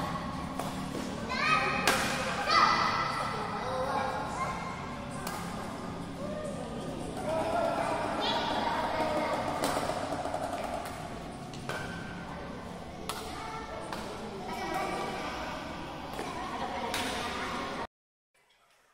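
Badminton rackets smack a shuttlecock back and forth in an echoing hall.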